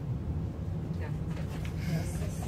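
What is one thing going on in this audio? Paper rustles at a lectern.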